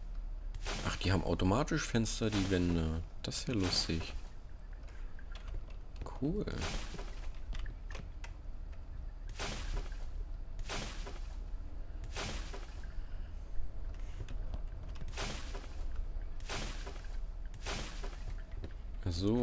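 Wooden wall pieces thud into place one after another.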